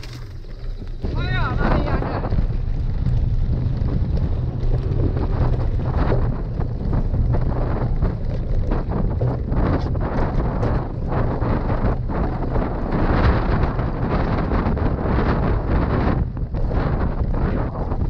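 Bicycle tyres rumble over bumpy grass.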